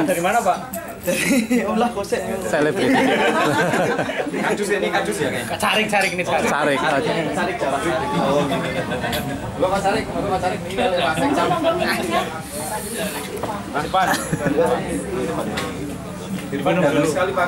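A young man talks loudly close by.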